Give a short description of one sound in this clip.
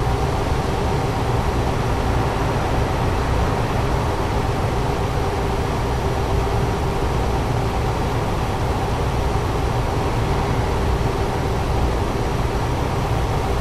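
Tyres roll on the road with a constant rumble.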